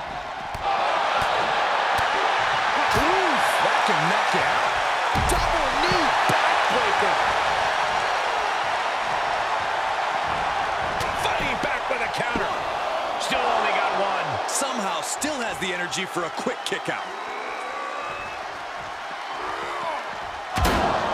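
A large crowd cheers and roars loudly throughout.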